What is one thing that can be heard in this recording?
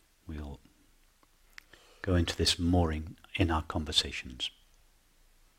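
A man speaks calmly and softly into a close microphone, then falls silent.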